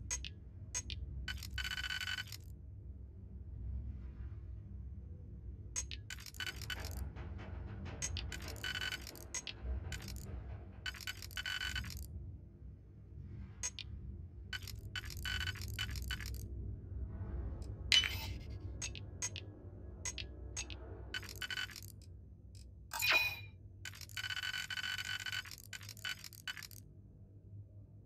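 Electronic beeps and clicks sound in quick bursts.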